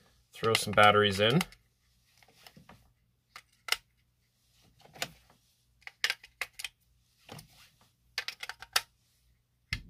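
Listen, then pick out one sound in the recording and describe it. Batteries click into a plastic compartment.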